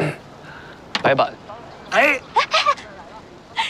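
A middle-aged man laughs heartily close by.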